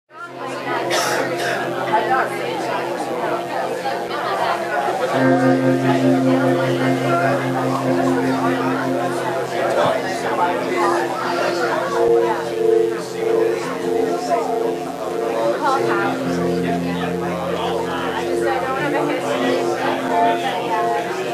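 A live rock band plays with electric guitars.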